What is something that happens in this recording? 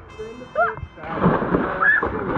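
A body splashes into a pool.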